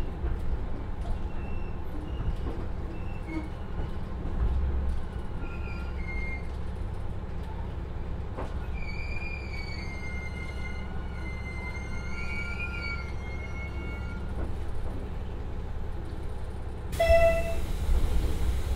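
A diesel train engine rumbles low and steady.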